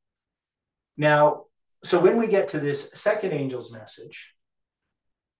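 A middle-aged man speaks calmly and explains, close to the microphone.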